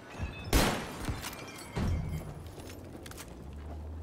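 A shotgun is reloaded with metallic clicks.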